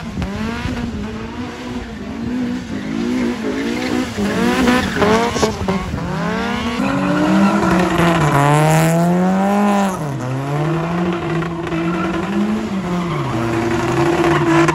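Tyres squeal on tarmac as a car drifts.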